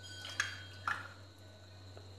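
A metal bowl taps against the rim of a pan.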